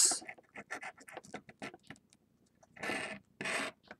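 A coin scratches briskly across a card.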